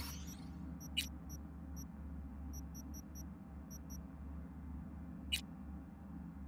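Soft electronic menu clicks tick a few times.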